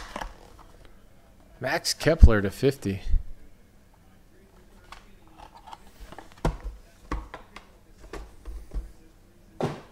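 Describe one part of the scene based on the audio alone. A hard plastic card case taps and clicks in a hand.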